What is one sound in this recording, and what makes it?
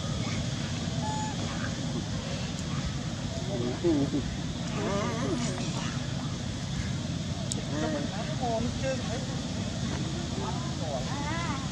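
A dry leaf crinkles as a monkey handles it.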